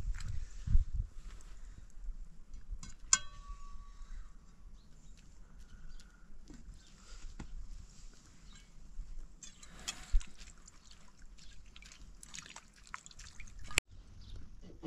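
Metal pots clink and clatter close by.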